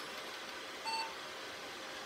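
A computer gives a short beep as it starts up.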